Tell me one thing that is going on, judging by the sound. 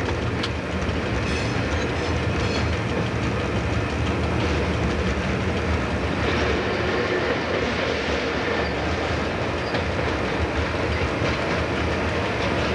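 Train wheels click and squeal over rail joints.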